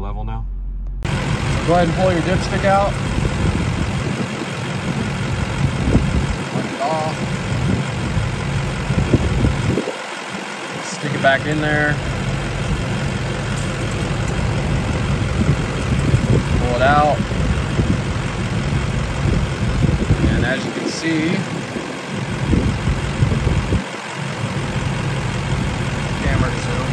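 An engine idles with a steady low rumble.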